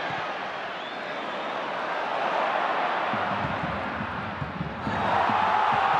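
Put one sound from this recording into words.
A large stadium crowd murmurs steadily.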